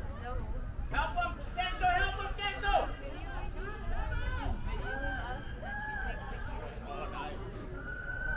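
Young women shout and call to each other far off across an open field.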